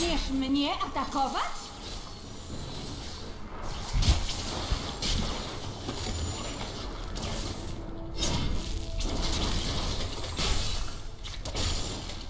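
A low rumbling roar of fiery effects goes on throughout.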